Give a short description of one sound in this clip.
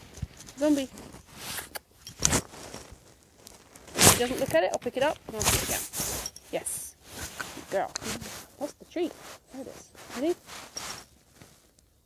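A woman talks softly and encouragingly to a puppy nearby.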